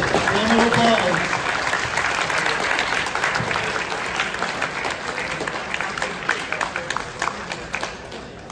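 A crowd applauds and cheers in an echoing hall.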